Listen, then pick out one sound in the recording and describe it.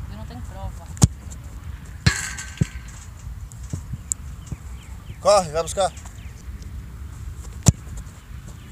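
A soccer ball is kicked with a sharp thump.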